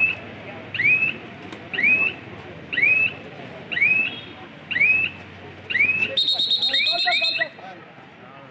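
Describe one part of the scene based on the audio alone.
A young man chants rapidly and repeatedly.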